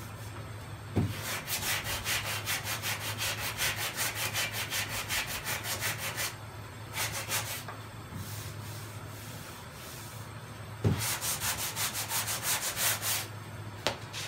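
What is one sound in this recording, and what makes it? A hand rubs sandpaper quickly back and forth over a metal car panel.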